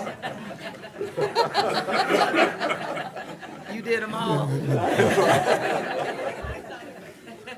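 Several people laugh together nearby.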